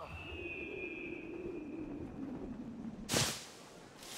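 Air rushes past during a fast fall.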